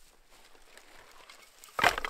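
A man digs into soft, rooty earth.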